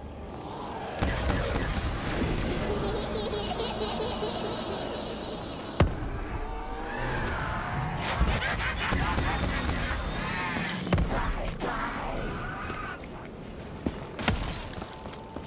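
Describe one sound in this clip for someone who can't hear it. A ray gun fires sharp electronic blasts.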